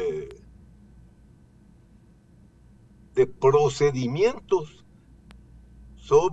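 An elderly man speaks calmly over an online call, with pauses.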